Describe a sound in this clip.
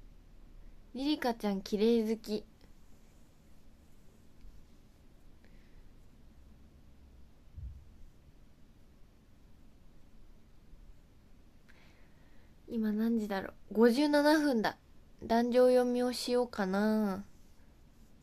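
A young woman speaks softly and closely, in short bursts.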